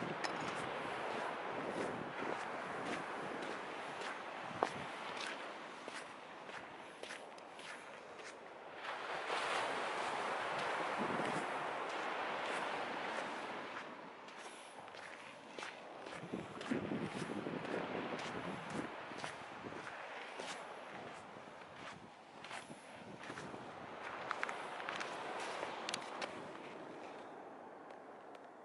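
Small waves wash gently onto the shore in the distance.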